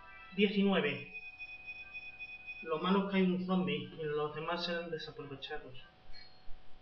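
A handheld game console plays tinny electronic sound effects.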